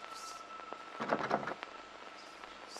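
A heavy door creaks and swings open.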